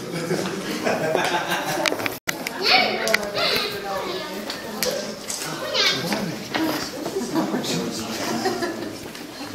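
Several young people talk and laugh together nearby.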